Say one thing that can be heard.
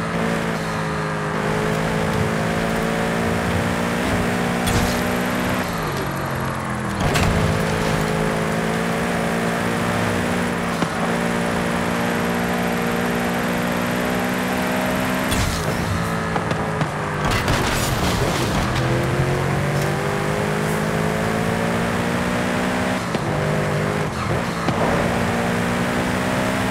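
A sports car engine roars steadily at high speed, dropping in pitch at each gear change.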